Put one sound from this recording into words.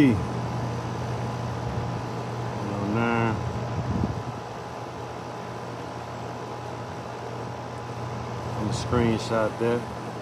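An air conditioning unit hums steadily close by.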